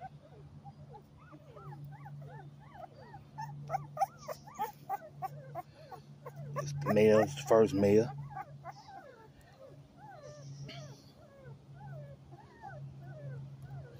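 A puppy whimpers and squeals in high, rising cries.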